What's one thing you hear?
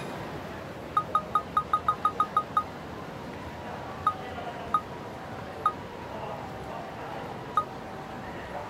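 Quick ticks sound rapidly while scrolling through a list.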